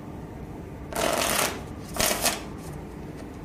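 Playing cards riffle together in a quick shuffle.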